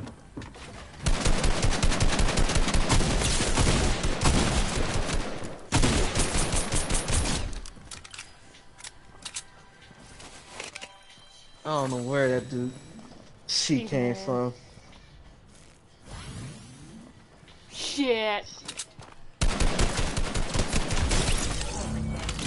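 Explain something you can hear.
Rapid gunfire bursts loudly, close by.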